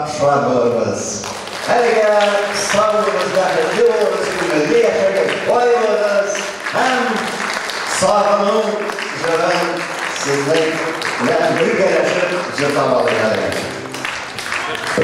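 A man speaks with animation through a microphone and loudspeakers in an echoing hall.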